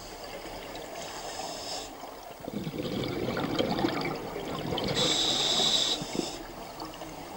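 A diver breathes in through a regulator with a sharp hiss.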